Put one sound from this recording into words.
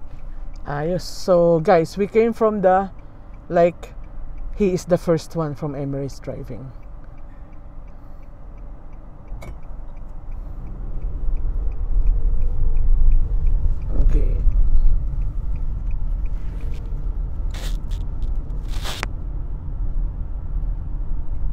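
A car engine hums with steady road rumble as the car drives.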